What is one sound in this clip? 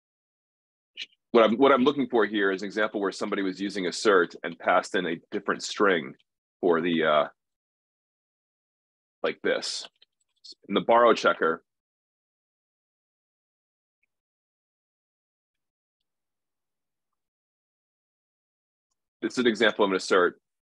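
A man talks calmly over an online call, in bursts with pauses.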